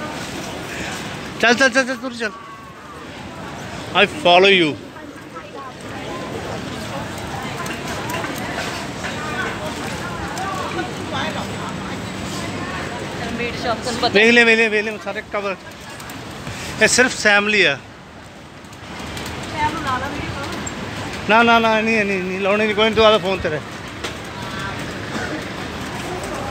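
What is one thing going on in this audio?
A crowd of people chatters in a busy street outdoors.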